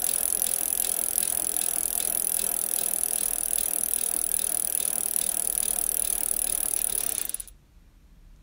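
A spoon stirs and scrapes in a glass bowl.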